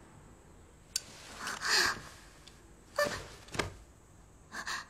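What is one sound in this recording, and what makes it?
A young girl sobs and cries out.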